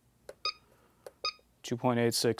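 A battery charger beeps as its buttons are pressed.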